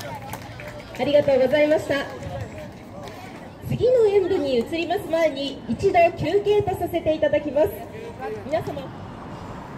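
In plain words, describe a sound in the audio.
A young woman speaks cheerfully into a microphone over a loudspeaker outdoors.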